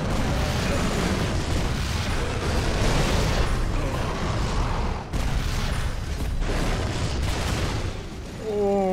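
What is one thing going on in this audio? Automatic gunfire rattles and booms in a video game battle.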